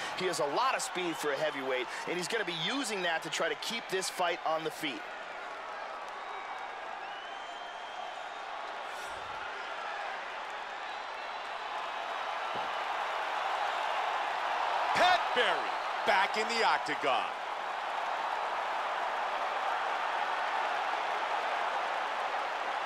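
A large crowd cheers and roars in a big arena, growing louder.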